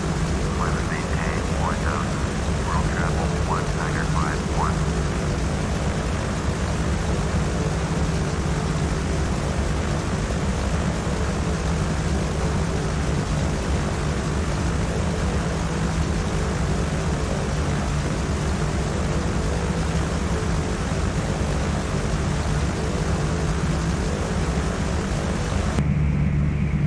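A twin propeller engine drones steadily and loudly.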